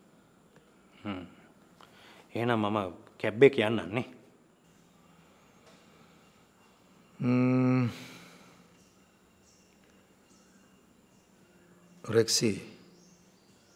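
A younger man speaks, close by, in a tense voice.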